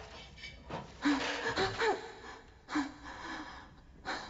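A young woman gasps and whimpers close by.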